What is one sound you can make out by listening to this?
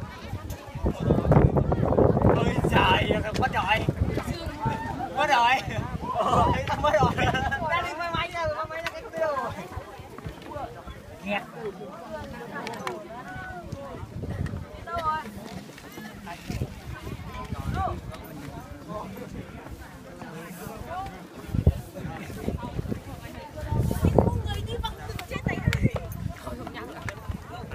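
A crowd of young men and women chatter nearby outdoors.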